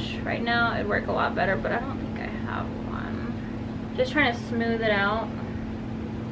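A woman talks calmly and close to a microphone.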